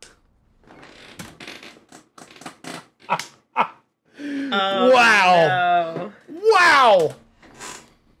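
A man laughs loudly and exclaims with animation close to a microphone.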